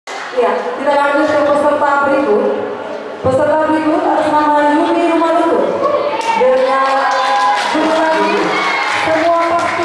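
A young woman speaks with animation through a microphone and loudspeakers.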